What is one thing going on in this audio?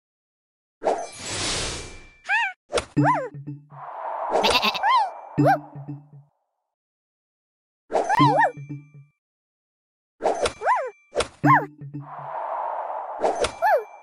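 Cartoon pops, chimes and whooshes sound in bursts as game pieces match and burst.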